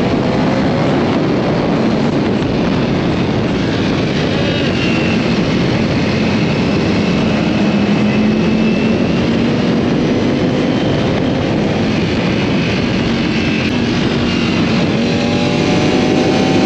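Wind rushes past a rider at highway speed.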